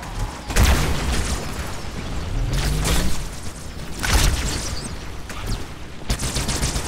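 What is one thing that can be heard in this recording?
Energy weapons fire in bursts with sharp, hissing blasts.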